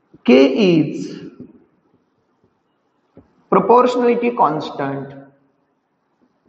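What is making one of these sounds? A man speaks calmly and clearly, close by, in short phrases.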